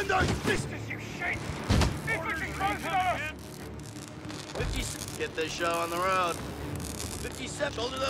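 Gunshots crack in a battle.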